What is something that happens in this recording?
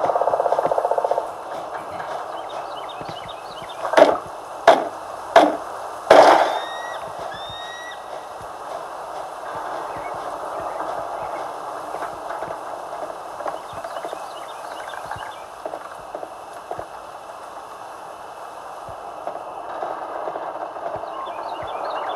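Footsteps patter softly along the ground.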